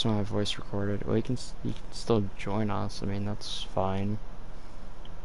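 A young man talks casually and close into a microphone.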